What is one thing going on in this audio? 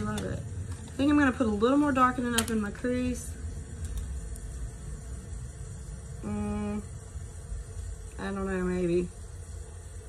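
A woman talks close by, calmly and with animation.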